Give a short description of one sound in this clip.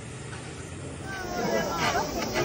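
A crowd of people chatters loudly close by.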